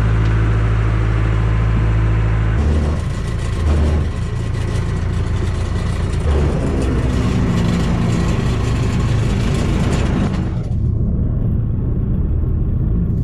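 A diesel engine rumbles loudly and steadily close by.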